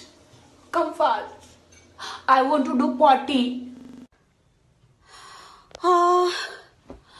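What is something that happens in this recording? A woman speaks close to a phone microphone with animation.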